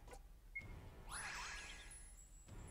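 A sharp magical strike bursts and rings out.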